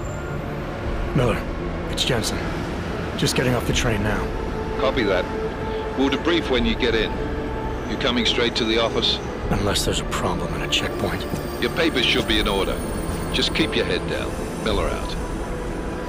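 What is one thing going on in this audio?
A man speaks calmly over a radio earpiece.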